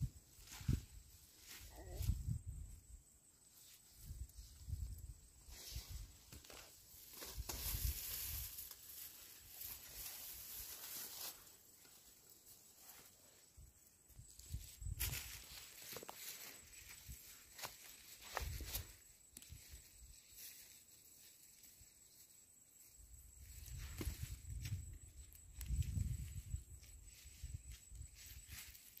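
Leaves and vines rustle as hands pull through plants.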